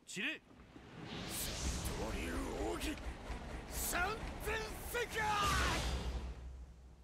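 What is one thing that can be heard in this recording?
A young man shouts with effort.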